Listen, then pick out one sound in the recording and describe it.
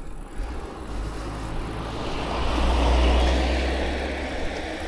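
A car approaches on the road and swells loudly as it drives close by.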